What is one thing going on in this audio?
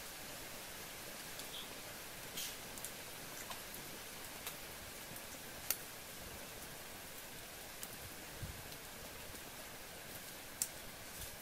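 Hands scrape and clink against a clay pot.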